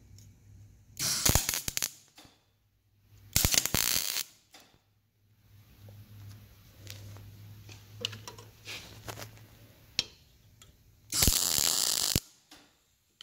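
An arc welder crackles and buzzes in short bursts.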